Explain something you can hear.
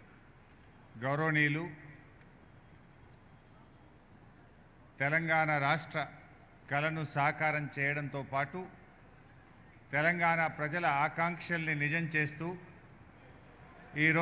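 A man speaks into a microphone through loudspeakers, in short bursts with pauses.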